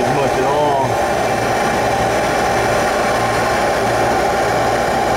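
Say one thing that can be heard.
An air conditioner unit runs with a steady, loud whirring hum.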